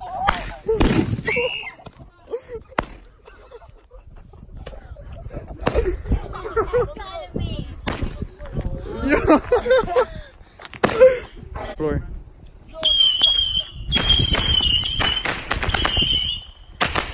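Firecrackers bang sharply outdoors, one after another.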